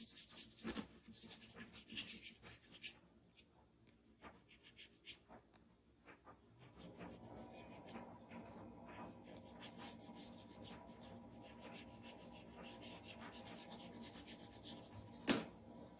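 A soft brush swishes and dabs on paper.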